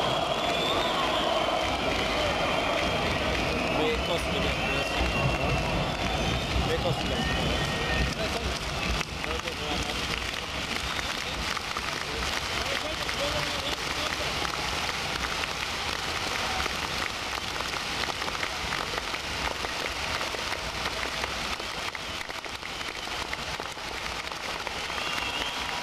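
A crowd cheers and shouts nearby.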